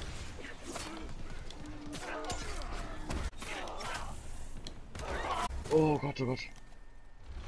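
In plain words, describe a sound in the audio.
Swords clash and ring in a fight.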